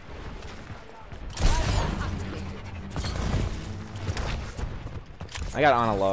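A video game gun fires in quick bursts.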